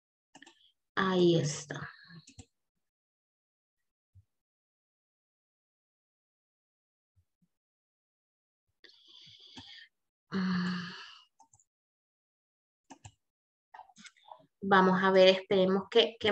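A woman speaks through an online call in short bursts, with long pauses.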